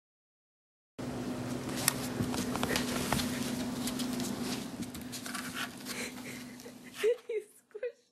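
A cat shifts about in a cardboard box, rustling the cardboard.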